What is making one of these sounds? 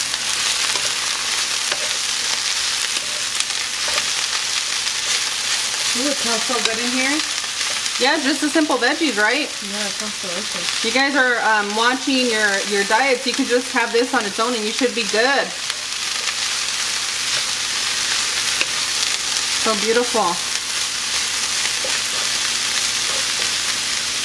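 Vegetables sizzle steadily in a hot pan.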